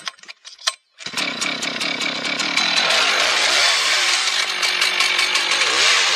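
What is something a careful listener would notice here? A chainsaw engine roars loudly as the saw cuts into wood.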